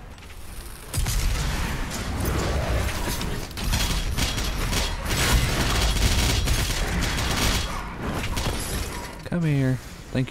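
A shotgun fires in loud, booming blasts.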